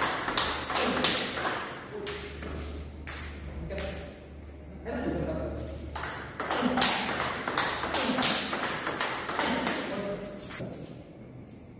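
A ping-pong ball clicks sharply against paddles and the table in a quick rally.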